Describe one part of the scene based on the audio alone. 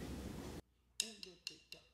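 Drums and cymbals are struck in a beat.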